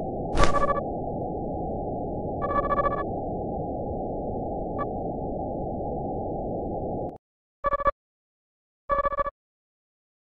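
Short electronic beeps chirp in quick bursts.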